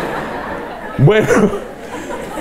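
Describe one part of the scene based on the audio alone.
A middle-aged man laughs into a microphone.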